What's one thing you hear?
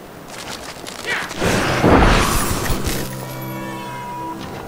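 Creatures shriek and roar loudly.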